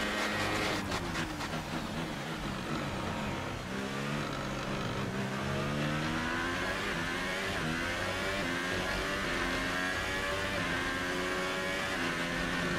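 A racing car engine whines loudly, dropping in pitch as it slows and then rising again as it speeds up through the gears.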